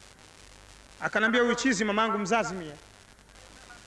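A man speaks loudly with animation.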